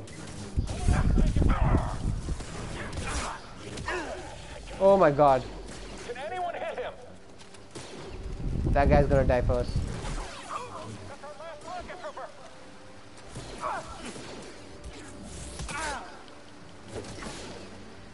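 Blaster shots zap in quick bursts.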